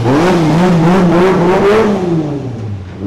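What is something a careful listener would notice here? A sports car engine revs loudly close by.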